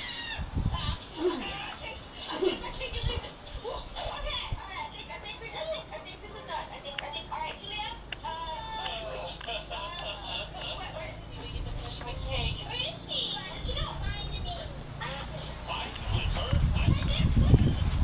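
A young woman speaks softly close to a microphone.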